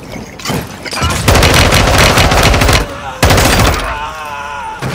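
A rifle fires loud, rapid bursts close by.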